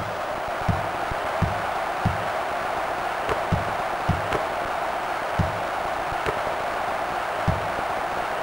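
A basketball bounces with dull thumps on a court.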